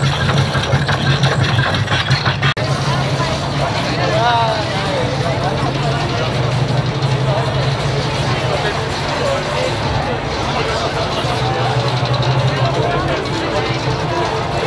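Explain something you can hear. A crowd of young people chatters and cheers outdoors.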